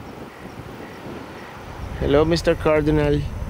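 A bird chirps nearby.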